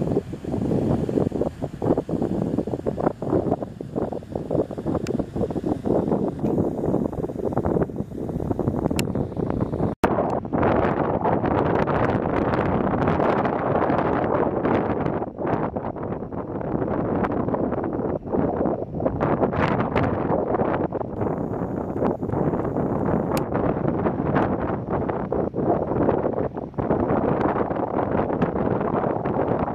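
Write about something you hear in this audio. Strong wind blusters loudly across the microphone outdoors.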